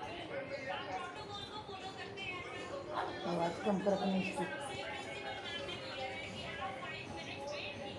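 A parrot's claws scrape on a wire cage.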